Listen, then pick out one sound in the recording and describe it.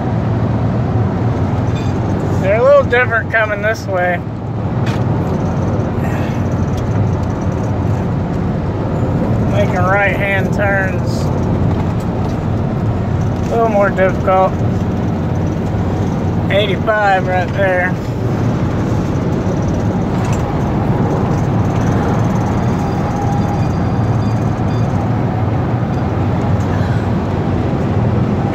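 Tyres roar steadily on a paved road.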